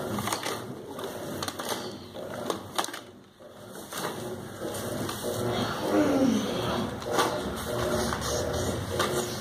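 Grass rustles as a toy is pushed through it.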